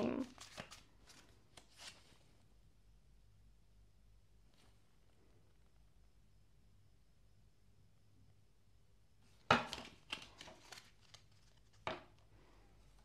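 Cards shuffle and flick in a woman's hands.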